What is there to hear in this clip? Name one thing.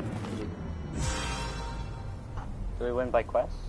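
A short triumphant fanfare rings out.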